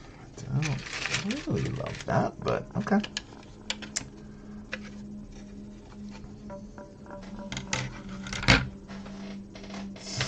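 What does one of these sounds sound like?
Plastic bricks click and rattle as they are handled.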